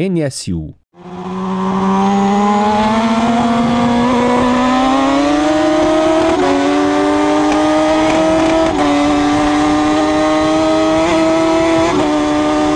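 A motorcycle engine roars at high speed, its pitch climbing as it shifts through gears.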